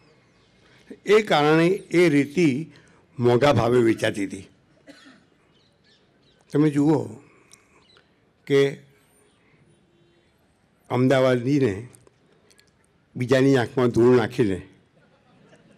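An elderly man speaks slowly and calmly into a microphone, in short phrases with pauses.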